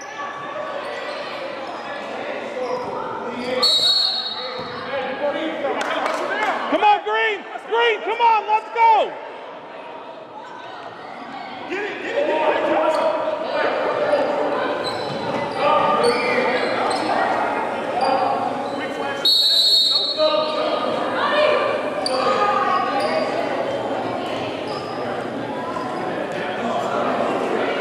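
A crowd of spectators chatters throughout.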